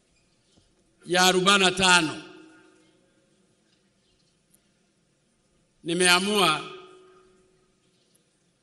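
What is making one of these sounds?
A man speaks slowly and forcefully into a microphone over loudspeakers, with echo trailing after each phrase.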